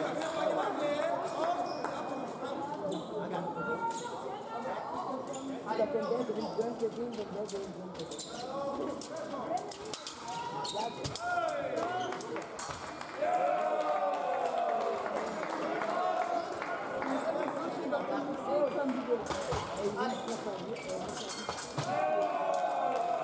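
Fencers' shoes stamp and squeak on the floor.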